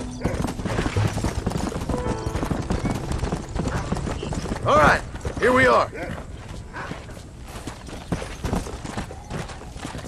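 A horse's hooves clop and thud along a dirt path.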